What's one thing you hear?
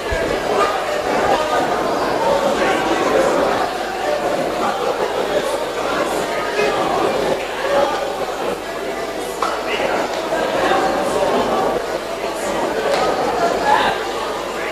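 A large crowd of men and women sings together loudly in an echoing hall.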